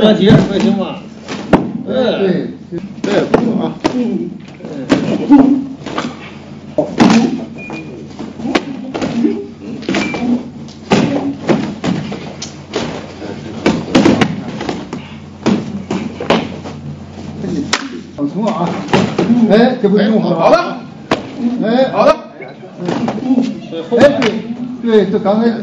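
Gloved punches thud against pads and protective vests.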